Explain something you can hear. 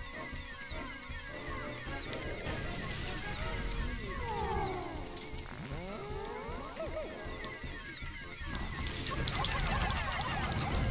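Tiny cartoon creatures chirp and squeak in high little voices.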